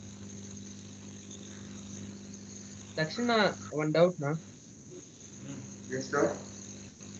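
A fan hums steadily.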